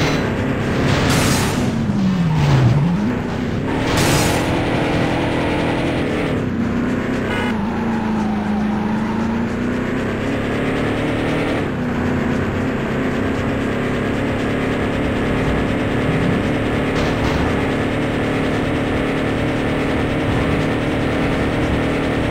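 A car engine roars steadily, rising and falling in pitch as it speeds along.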